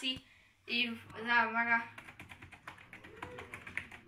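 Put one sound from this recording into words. Fingers tap quickly on a keyboard's keys.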